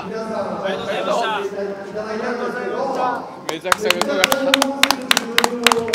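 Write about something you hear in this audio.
A young man talks and laughs with excitement nearby.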